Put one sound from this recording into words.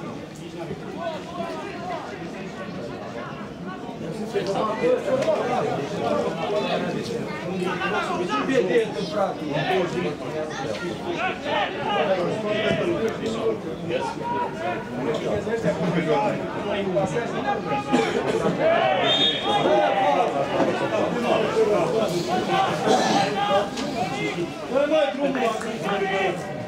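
A crowd of spectators murmurs and chants in a large open stadium.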